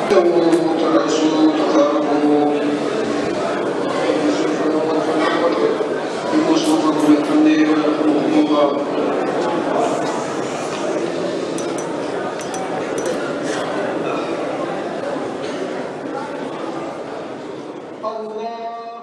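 A man chants a prayer through a loudspeaker in a large echoing hall.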